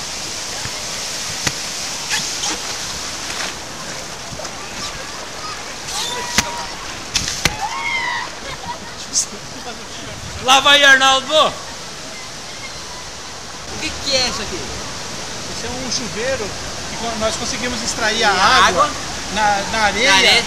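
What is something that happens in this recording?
Surf water rushes and splashes close by.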